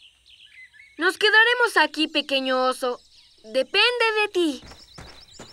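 A young boy speaks with animation, close by.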